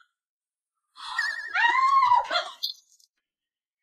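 A young woman screams loudly in alarm.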